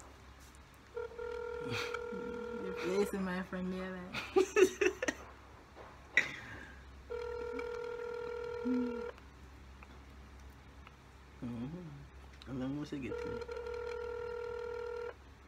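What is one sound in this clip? A phone plays a steady electronic tone in repeated bursts.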